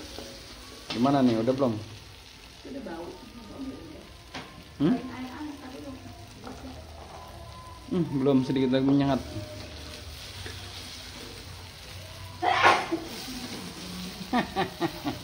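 Food sizzles softly in a hot wok.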